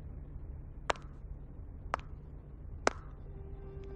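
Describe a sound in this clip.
Water drops tap sharply on glass.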